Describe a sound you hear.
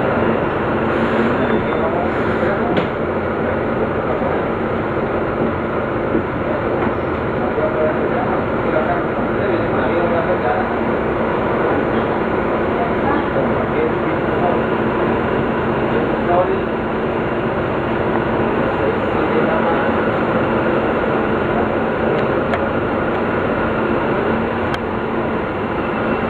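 A bus engine hums steadily inside a moving bus.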